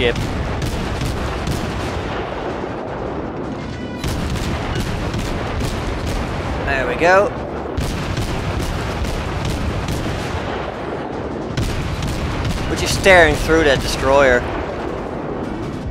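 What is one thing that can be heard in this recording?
Heavy naval guns fire in rapid, booming volleys.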